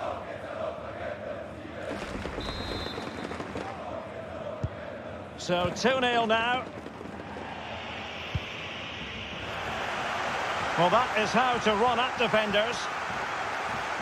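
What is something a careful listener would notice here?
A large stadium crowd roars and cheers steadily, swelling louder toward the end.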